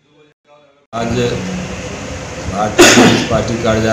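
An elderly man speaks into a microphone, loud and close.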